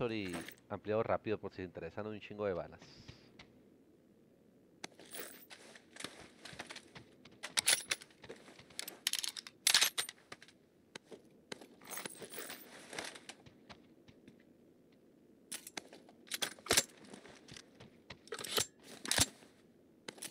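Metal gear clicks and rattles as items are picked up.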